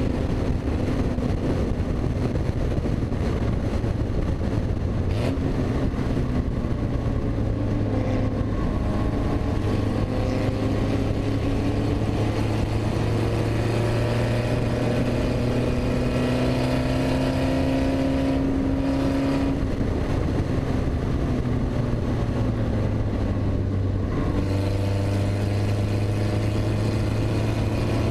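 Wind rushes loudly past an open car.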